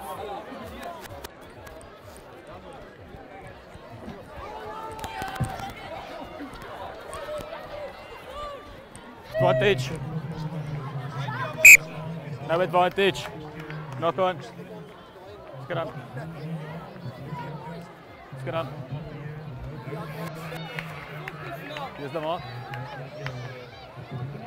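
A crowd of spectators cheers and chatters outdoors.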